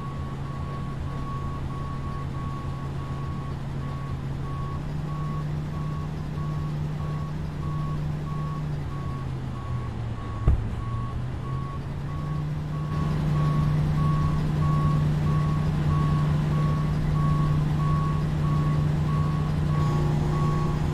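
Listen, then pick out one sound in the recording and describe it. An aircraft engine hums steadily nearby.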